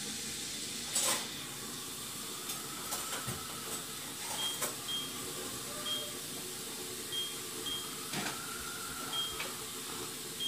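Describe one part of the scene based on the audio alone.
Buttons on a handheld game console click as they are pressed.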